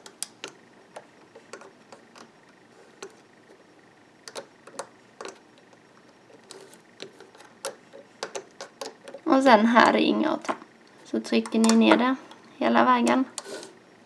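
Small plastic clicks and rubber bands snap softly as bands are hooked on a loom.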